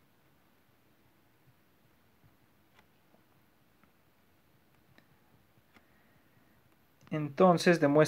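A stylus taps softly on a tablet.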